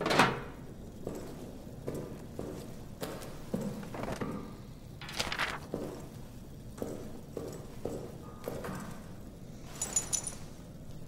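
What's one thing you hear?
Footsteps thud slowly on a creaking wooden floor.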